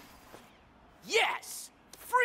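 A young man shouts in triumph.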